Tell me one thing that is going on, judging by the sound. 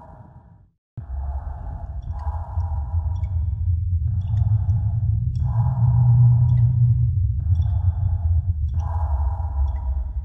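Torch flames roar and crackle steadily.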